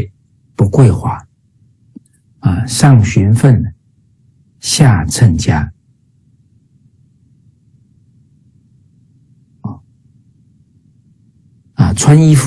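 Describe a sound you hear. A middle-aged man speaks calmly in short phrases through an online call.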